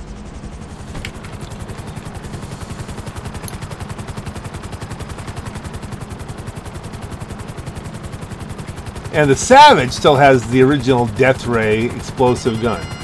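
A helicopter engine starts and its rotor blades thump rapidly.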